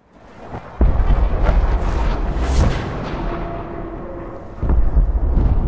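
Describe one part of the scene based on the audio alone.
A huge explosion booms and rumbles, then slowly fades.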